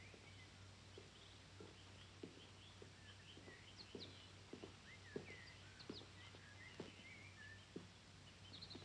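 Footsteps fall on wet pavement, coming closer.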